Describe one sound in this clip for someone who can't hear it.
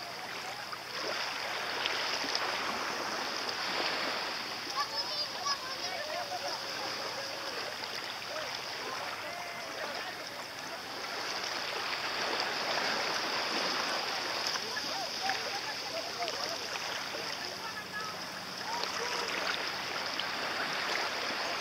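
Small waves lap gently at the water's edge.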